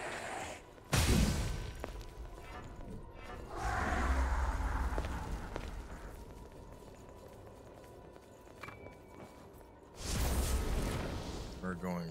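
A heavy blade slashes and strikes with a loud impact.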